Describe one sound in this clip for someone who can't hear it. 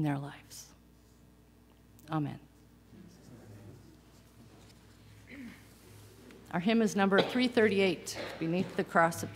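An elderly woman speaks calmly through a microphone, with pauses.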